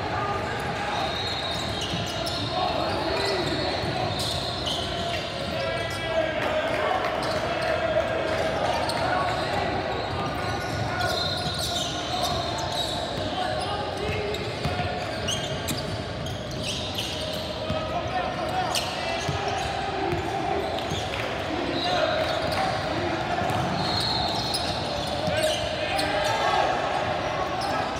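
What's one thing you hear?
Young players and onlookers shout and call out across the gym.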